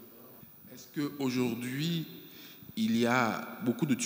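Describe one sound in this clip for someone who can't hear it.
A man speaks into a microphone in a large room.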